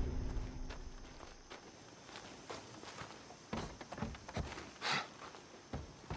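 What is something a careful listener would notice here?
Boots knock on wooden ladder rungs as someone climbs.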